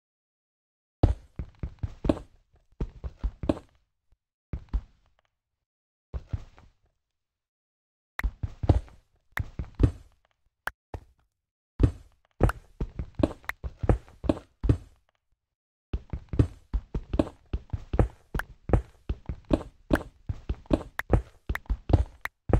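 A pickaxe chips at stone blocks with quick, dull knocks.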